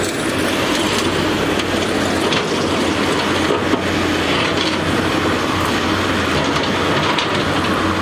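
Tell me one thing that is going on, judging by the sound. An excavator's diesel engine rumbles steadily.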